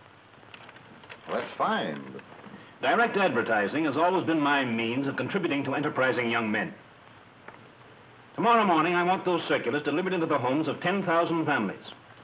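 An older man speaks with animation, close by.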